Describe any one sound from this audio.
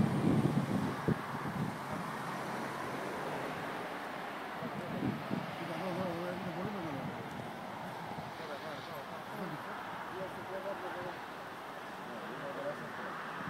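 A large fire roars and crackles steadily outdoors.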